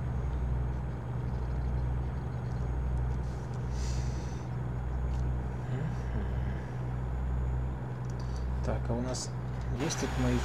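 Tyres hum on a smooth highway.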